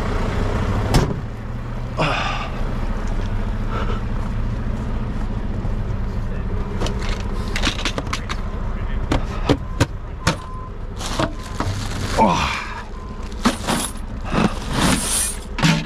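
Boots crunch on packed snow.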